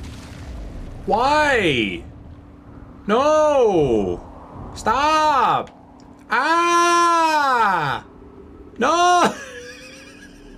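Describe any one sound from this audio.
A man sings loudly in a wailing, arching voice, close to a microphone.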